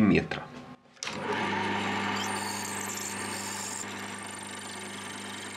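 A lathe motor starts up and hums steadily as the spindle spins.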